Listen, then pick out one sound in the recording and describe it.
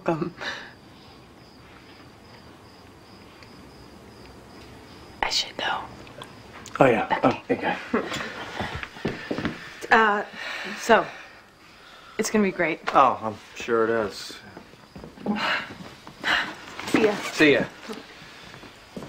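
A woman talks and laughs softly up close.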